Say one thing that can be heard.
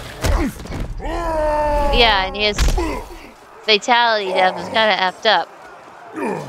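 A gruff male creature groans and grunts in pain.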